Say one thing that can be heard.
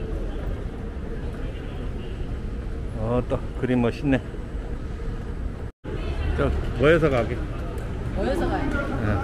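A moving walkway hums in a large echoing hall.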